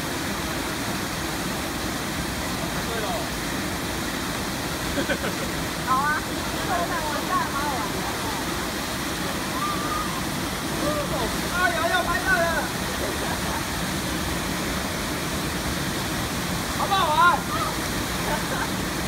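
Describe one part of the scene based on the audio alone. A waterfall roars steadily and loudly.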